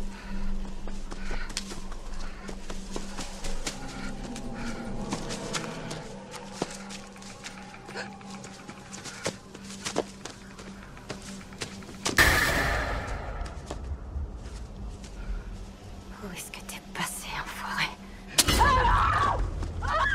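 A young woman pants heavily.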